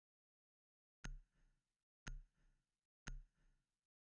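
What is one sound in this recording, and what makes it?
A game countdown beeps once each second.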